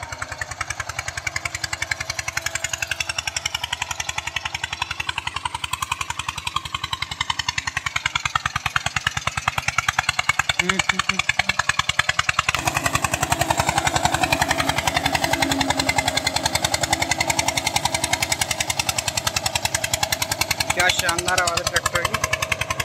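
A single-cylinder diesel tractor chugs, pulling a cultivator through soil.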